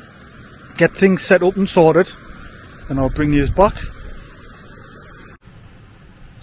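A shallow stream trickles gently over stones outdoors.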